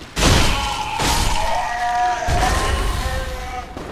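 A heavy crash sounds as a large body collapses.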